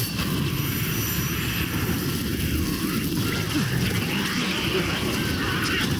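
Swords slash and clang in a fierce fight.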